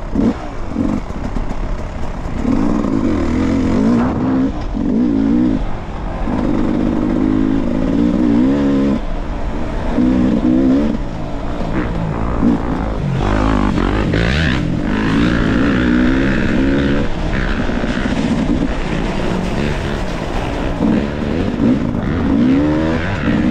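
Tyres crunch over dirt and leaves.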